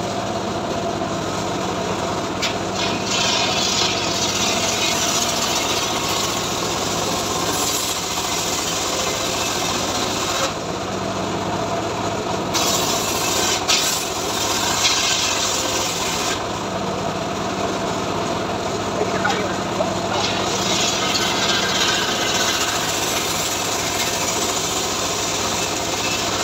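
An engine drones steadily close by.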